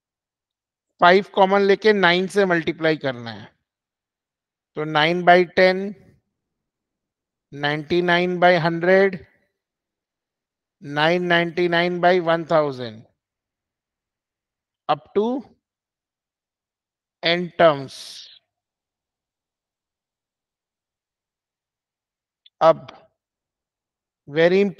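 A man speaks calmly through a microphone in short phrases, with pauses.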